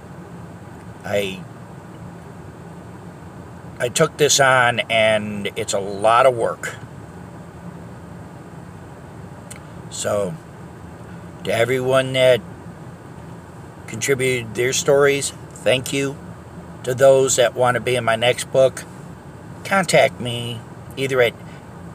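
A middle-aged man talks calmly close by, in short bursts with pauses.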